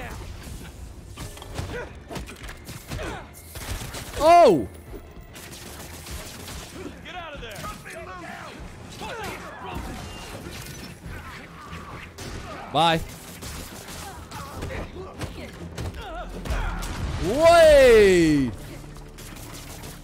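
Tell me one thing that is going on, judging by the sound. Punches and kicks thud in a fast video game brawl.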